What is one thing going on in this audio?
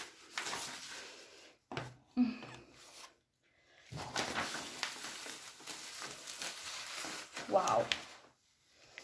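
A large sheet of stiff paper crinkles and rustles as it is unrolled.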